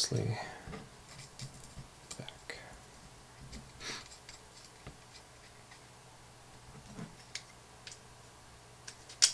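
Small hard parts click and tap against each other as they are handled.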